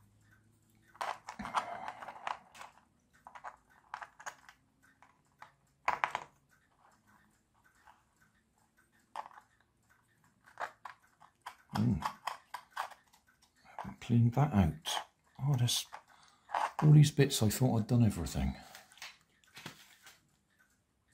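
Plastic parts click and rattle as they are fitted together by hand.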